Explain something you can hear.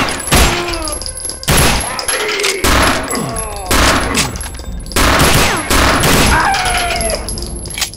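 Gunshots fire in loud, repeated blasts.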